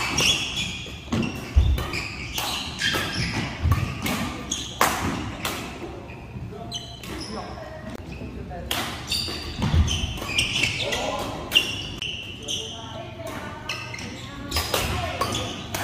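Shuttlecocks are struck sharply by rackets again and again in a large echoing hall.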